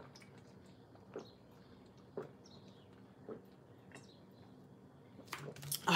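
A woman gulps water from a plastic bottle.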